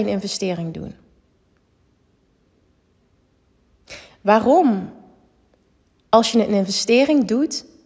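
A young woman speaks with animation into a microphone, with pauses.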